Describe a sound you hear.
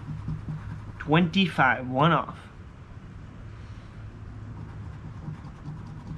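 A coin scratches across a card.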